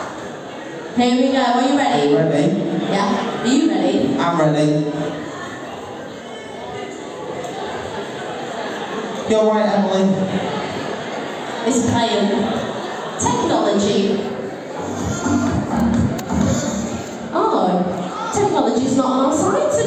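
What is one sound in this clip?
Women sing loudly through loudspeakers in a large echoing hall.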